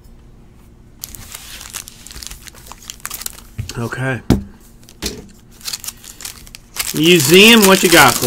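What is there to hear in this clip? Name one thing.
Foil packs crinkle as hands tear them open.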